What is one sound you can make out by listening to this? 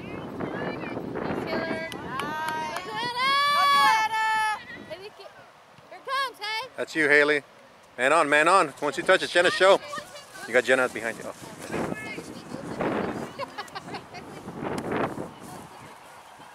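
Young girls shout and call out to each other across an open field.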